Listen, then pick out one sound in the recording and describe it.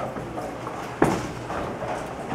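A bowling ball thuds onto a lane.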